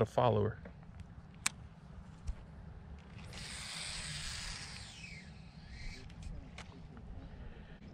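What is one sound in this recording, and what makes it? A baitcasting reel winds in line.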